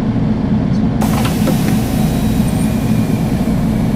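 Bus doors close with a hiss of air.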